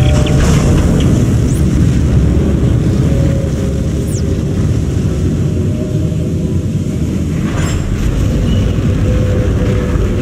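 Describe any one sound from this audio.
A fire roars with a low, steady rumble.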